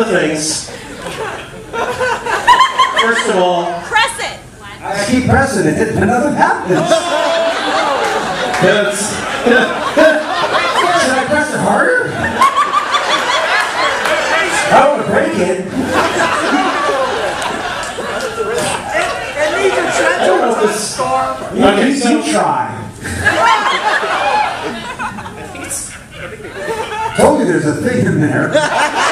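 A second man talks and jokes into a microphone over loudspeakers.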